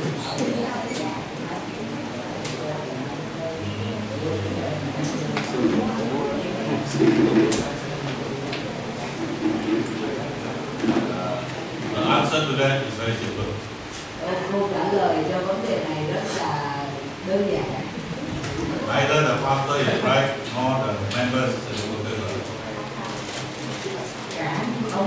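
An older man speaks with animation into a microphone over a loudspeaker in an echoing hall.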